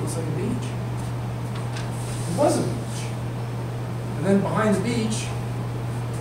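A man speaks to a group, pausing between phrases.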